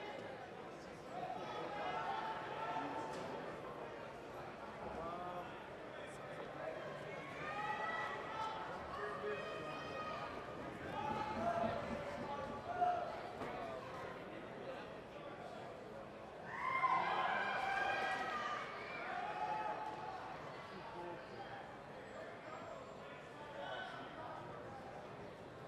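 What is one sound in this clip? A crowd shouts and cheers nearby, louder at moments.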